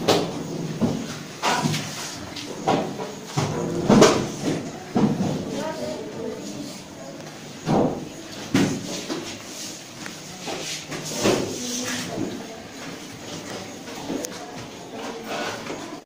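Chalk taps and scrapes on a blackboard.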